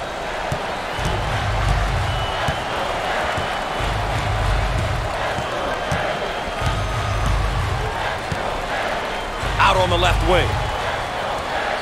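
A basketball bounces steadily on a hardwood floor.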